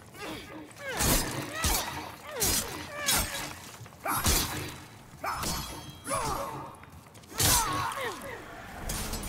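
Metal blades clash and ring.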